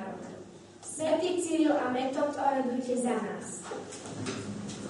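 A young girl reads aloud in an echoing room.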